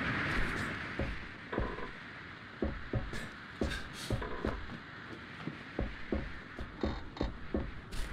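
Footsteps thud on a hard floor at a walking pace.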